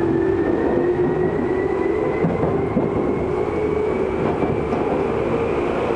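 A train rushes past close alongside.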